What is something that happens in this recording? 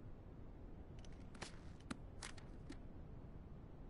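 Paper pages rustle as a notebook is flipped open.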